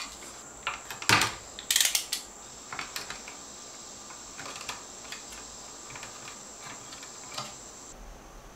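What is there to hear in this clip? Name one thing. Hands tap and knock on an electrical box fixed to a wooden stud.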